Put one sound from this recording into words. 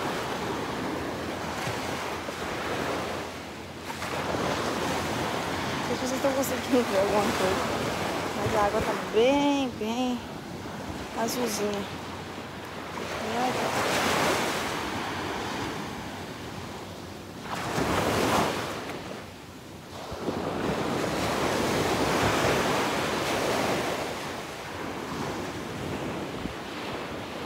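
Waves wash onto the shore.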